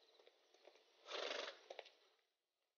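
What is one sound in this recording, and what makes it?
A wooden carriage door creaks open.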